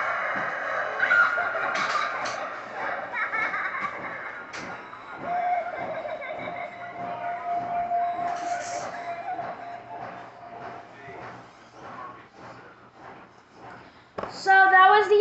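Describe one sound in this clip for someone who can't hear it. Eerie music plays from small laptop speakers.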